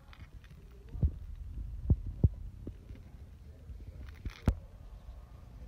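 Metal keychain parts clink and jingle.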